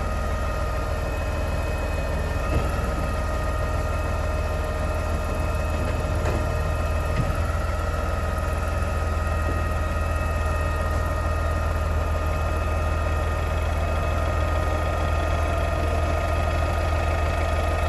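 A hydraulic pump on a garbage truck whines steadily.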